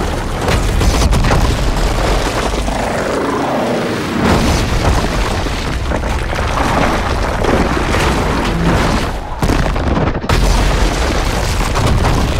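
Rubble and debris crash and tumble.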